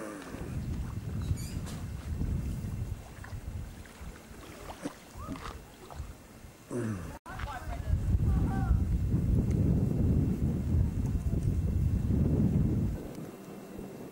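Wind blows hard outdoors, rumbling against the microphone.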